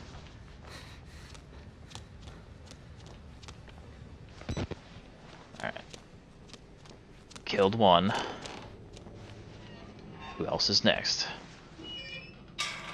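Footsteps fall steadily on a hard floor.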